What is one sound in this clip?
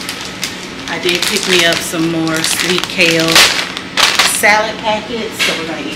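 A plastic salad bag crinkles and rustles.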